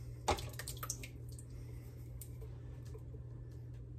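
Tomato sauce glugs out of a can into a pot.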